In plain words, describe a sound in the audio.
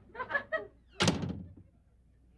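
A door bangs shut.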